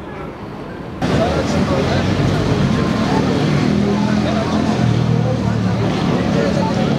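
A crowd of men and women talks and murmurs outdoors nearby.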